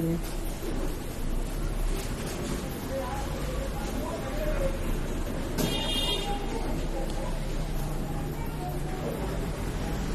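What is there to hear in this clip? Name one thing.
Paper rustles and crinkles between fingers.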